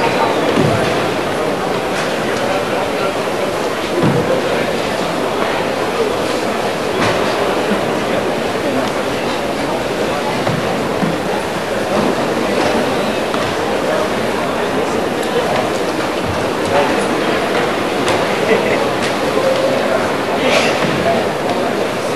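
A karate uniform snaps sharply with quick strikes.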